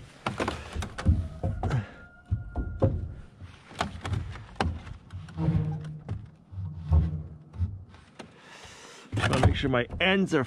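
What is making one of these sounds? Wooden boards knock and scrape against each other.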